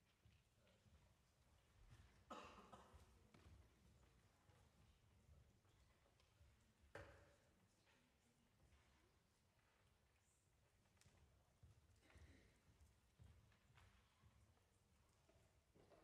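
Footsteps thud across a wooden stage in a large echoing hall.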